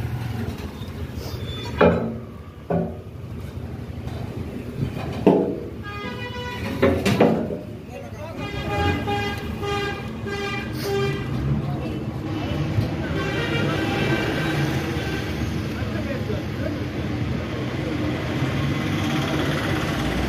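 A motor scooter engine idles nearby.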